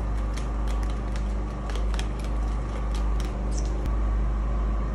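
A hand fan flaps in the air.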